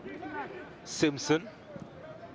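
A football is kicked on grass.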